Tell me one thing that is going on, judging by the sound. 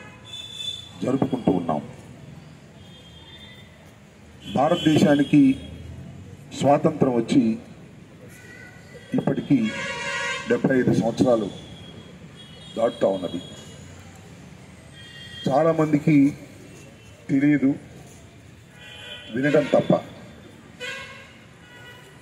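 An elderly man speaks loudly into a microphone outdoors, in short forceful phrases with pauses.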